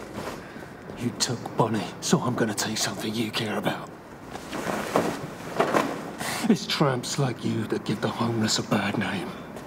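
A man with a rough voice speaks with animation.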